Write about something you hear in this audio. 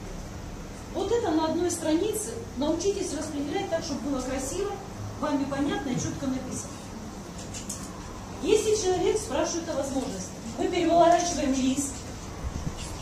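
A woman speaks calmly, in a clear voice nearby.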